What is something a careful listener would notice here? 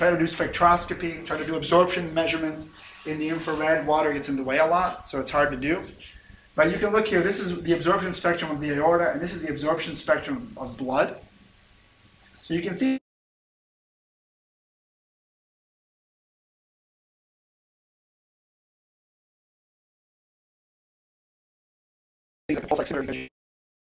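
A man lectures through a microphone.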